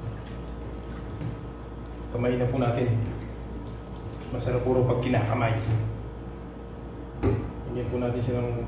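Hands squish and mix wet meat in a bowl.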